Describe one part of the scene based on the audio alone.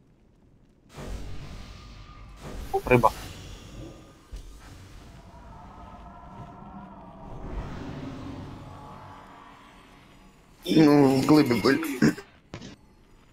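Magic spells whoosh and crackle in a game battle.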